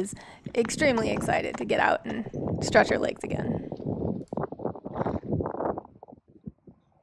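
A horse's hooves thud on dry dirt as it gallops away.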